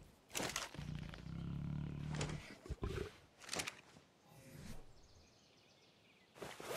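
Short interface clicks and swooshes sound now and then.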